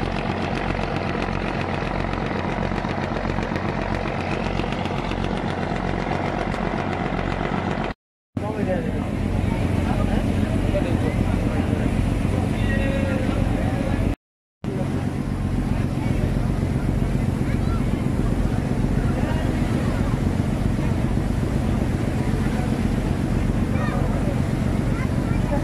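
Water churns and splashes in the wake of a moving boat.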